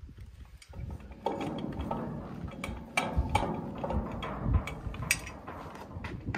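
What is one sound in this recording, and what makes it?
A metal tool clicks and clanks.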